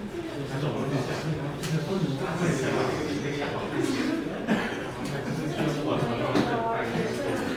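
A man speaks to a group in a large, echoing room.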